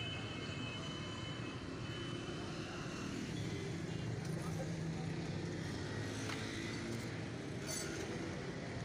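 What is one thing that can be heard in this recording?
A light metal panel rattles and clicks as it is handled.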